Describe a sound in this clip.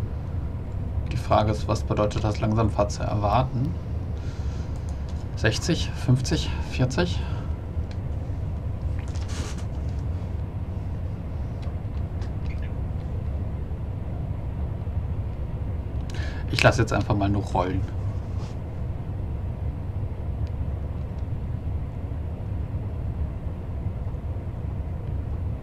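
An electric multiple unit rumbles along the track.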